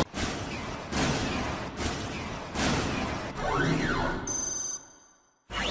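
A metal robot clanks as it moves.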